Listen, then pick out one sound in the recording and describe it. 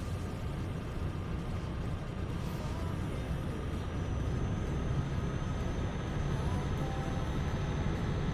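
A heavy truck engine drones steadily at cruising speed.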